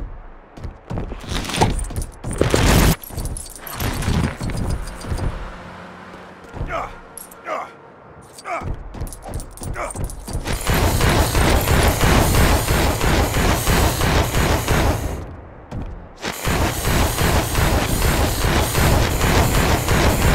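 Heavy footsteps thud as a large figure runs.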